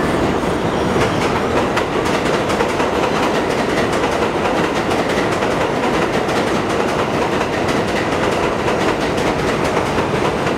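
Train wheels clatter and screech on the rails.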